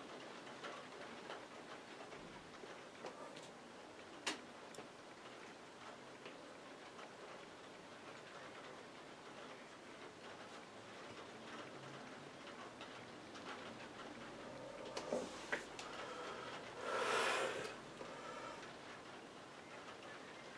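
A paintbrush dabs softly on paper.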